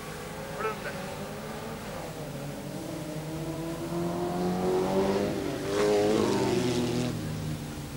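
Race car engines drone and whine as the cars speed along a gravel track.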